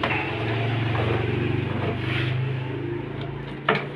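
A metal chain clinks on wood.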